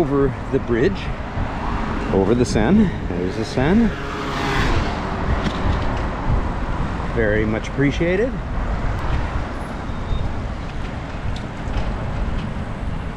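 Wind rumbles and buffets steadily outdoors while cycling.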